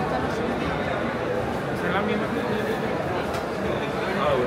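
Footsteps tap on a tiled floor.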